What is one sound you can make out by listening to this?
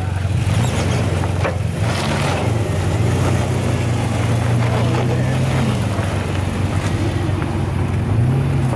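An engine idles with a low, steady rumble.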